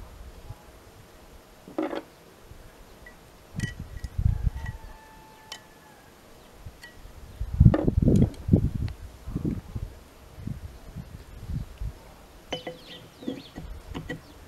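Metal parts clank and knock close by.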